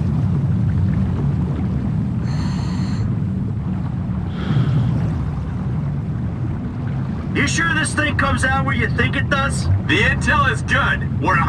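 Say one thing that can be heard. Air bubbles gurgle and stream from a diver's breathing gear.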